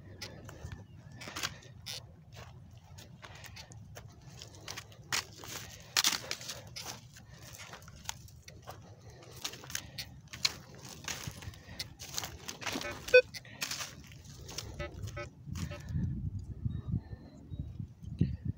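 Footsteps crunch through dry stubble close by.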